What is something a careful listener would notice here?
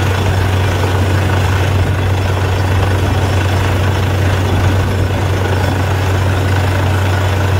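Compressed air blasts dust out of a borehole with a constant rushing hiss.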